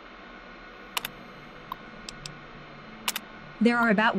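A computer terminal gives a few short clicks.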